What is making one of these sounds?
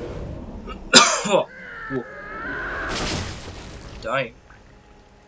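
A man cries out and gasps in pain, close by.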